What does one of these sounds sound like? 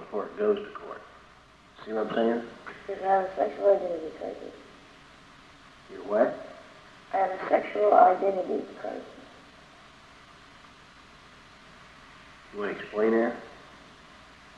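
A middle-aged man speaks firmly, heard through an old tape recording.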